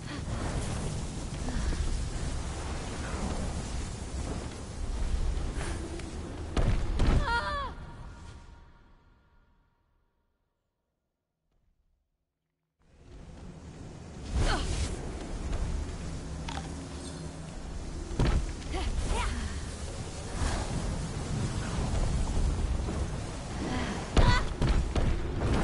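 Wind rushes past during a fast glide.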